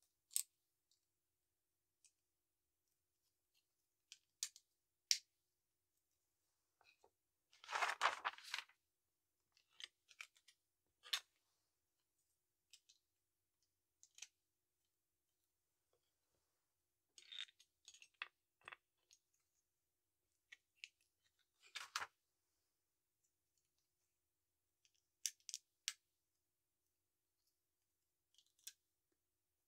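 Plastic toy bricks click and snap together.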